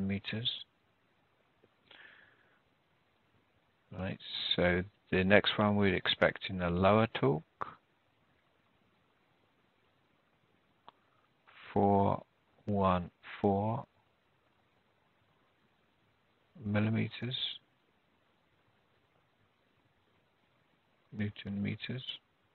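A man speaks calmly and explains in bursts, close to a microphone.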